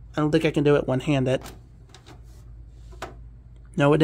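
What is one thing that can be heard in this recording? A power plug pushes into a computer's socket with a click.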